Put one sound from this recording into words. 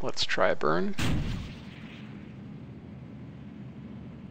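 A rocket engine fires with a steady roar.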